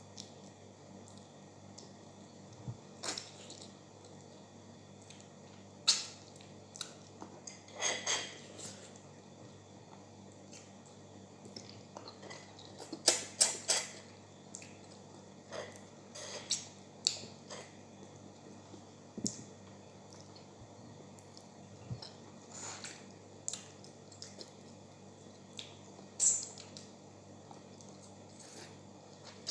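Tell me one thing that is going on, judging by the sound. A woman chews noisily with her mouth open.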